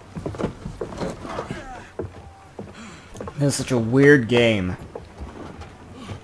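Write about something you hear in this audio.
Boots thud on a wooden deck.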